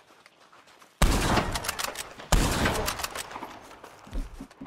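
A rifle fires two loud shots that echo and roll away.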